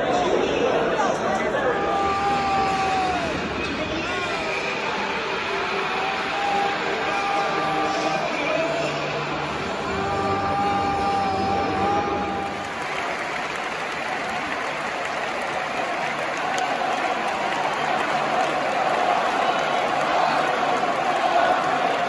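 A large stadium crowd murmurs and cheers in the open air.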